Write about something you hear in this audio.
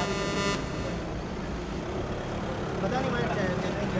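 A car pulls away.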